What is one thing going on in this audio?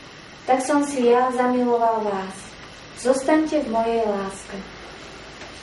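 Women sing together nearby.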